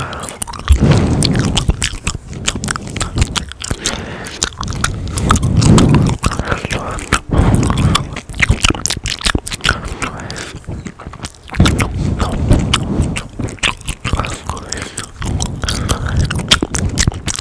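Mouth clicks and lip smacks sound close to a microphone.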